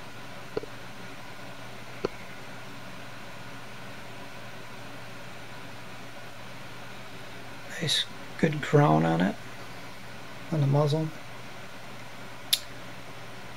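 A metal rifle clicks and knocks softly as hands handle it.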